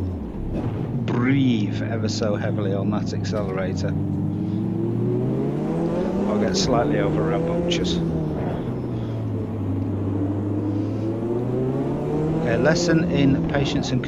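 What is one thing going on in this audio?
A racing car engine roars steadily, its pitch rising and falling.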